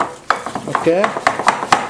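A wooden spoon knocks against a glass bowl.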